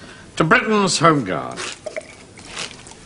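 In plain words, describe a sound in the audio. An elderly man calls out loudly, as if proposing a toast.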